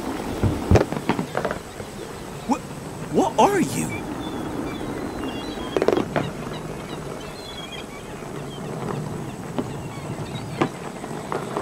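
A small toy car rolls and rattles over grass.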